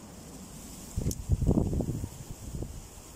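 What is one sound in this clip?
A heavy log rolls and thumps against another log.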